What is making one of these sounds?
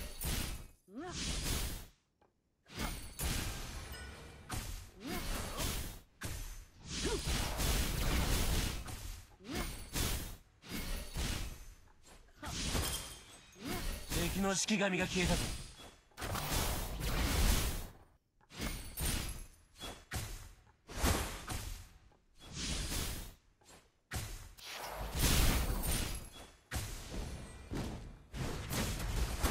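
Game spell effects and hits whoosh and crackle in bursts.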